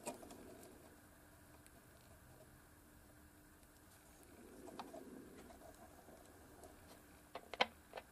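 Small plastic parts click as fingers press them together.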